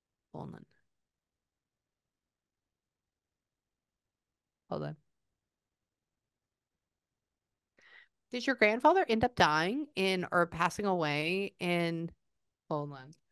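A young woman speaks close to a microphone, softly and then with animation.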